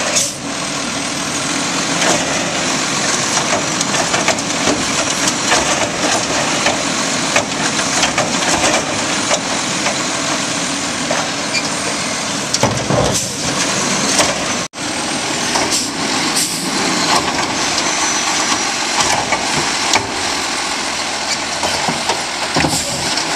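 A plastic bin knocks and clatters against metal.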